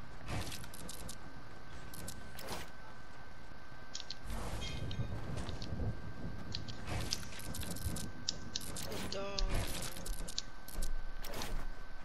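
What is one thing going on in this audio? Building pieces snap into place in quick clattering bursts.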